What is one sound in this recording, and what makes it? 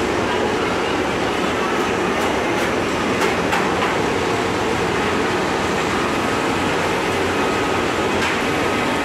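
Industrial machines rattle and hum loudly and steadily.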